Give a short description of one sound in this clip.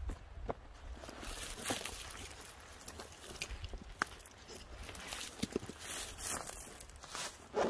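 A backpack's fabric rustles as it is lifted and hung up.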